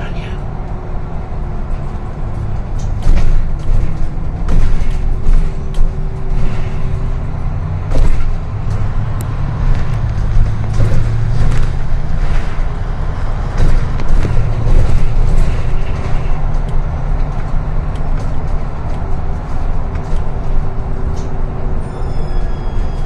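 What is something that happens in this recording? The bus body rattles and knocks over bumps in the road.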